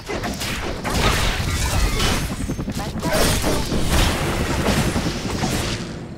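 Video game weapons fire in rapid bursts with electric zaps.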